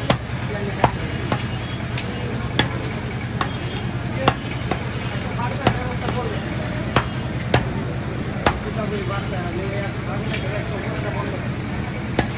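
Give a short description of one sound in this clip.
A cleaver chops through goat meat on a wooden block.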